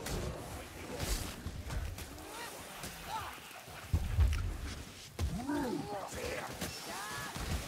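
A blade slashes and strikes flesh with wet thuds.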